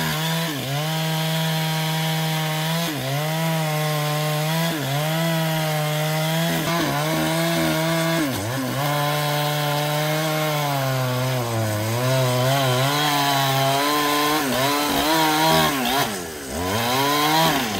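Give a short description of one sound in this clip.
A chainsaw engine roars loudly and rises and falls in pitch as it cuts into wood.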